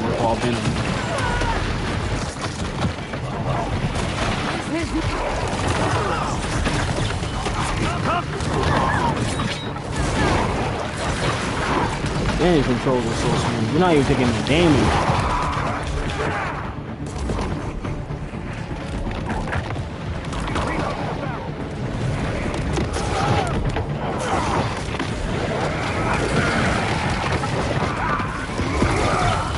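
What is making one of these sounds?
A young man with a headset talks with animation into a microphone.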